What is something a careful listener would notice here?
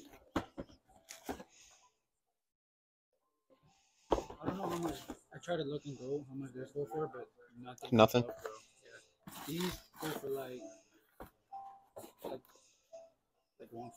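Cardboard boxes rustle and tap as they are handled.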